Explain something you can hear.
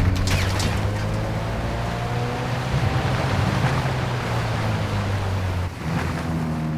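A motorboat engine drones steadily, then cuts out.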